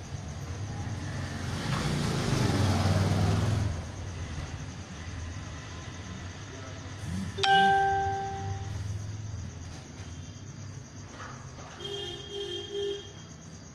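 A needle scrapes and taps softly on beaded fabric.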